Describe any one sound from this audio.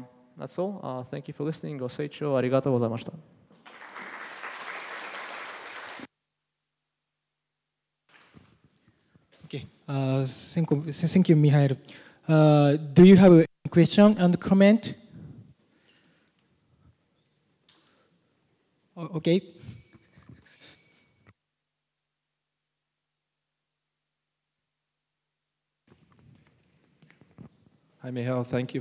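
A young man speaks calmly into a microphone, heard through a loudspeaker in a large hall.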